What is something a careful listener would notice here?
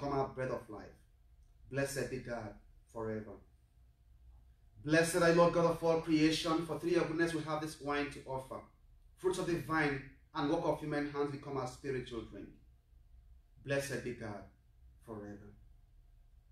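A man speaks calmly nearby, reciting in a slow, measured voice.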